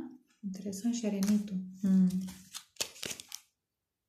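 A card is placed onto other cards with a soft slap.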